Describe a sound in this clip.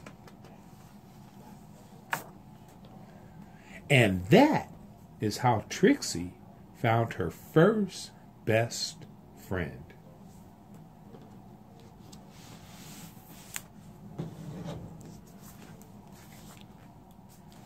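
Pages of a book turn with a soft papery rustle.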